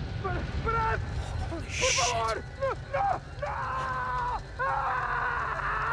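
A large fire crackles.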